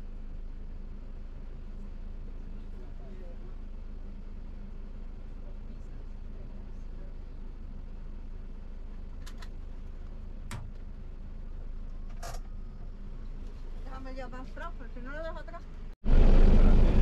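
A van engine hums steadily while driving.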